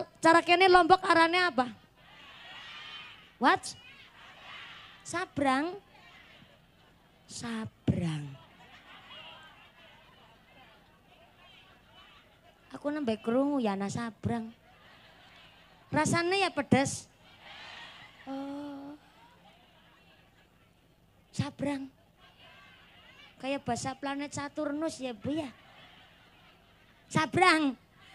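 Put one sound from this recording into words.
A young woman speaks with animation through a loudspeaker outdoors, in loud bursts with pauses.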